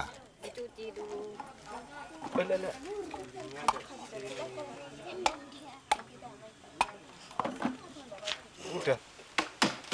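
A machete chops into a coconut with sharp knocks.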